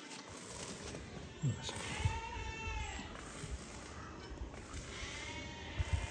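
A sheep's hooves thud softly on dirt as it walks.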